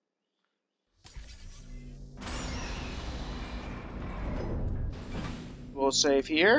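A heavy mechanical door slides open with a rumbling whoosh.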